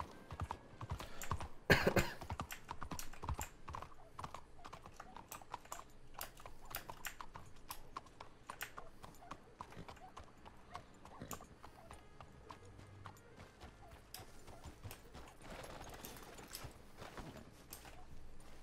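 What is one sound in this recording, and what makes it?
Horse hooves clop steadily on a road.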